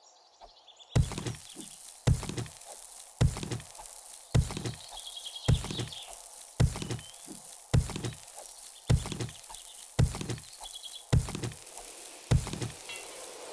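A pickaxe strikes rock again and again with heavy thuds.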